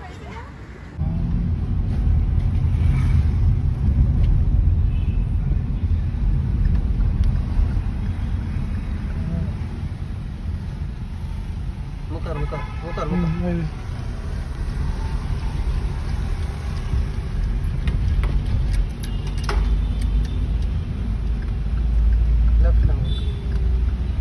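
A car engine hums and tyres rumble on the road from inside the car.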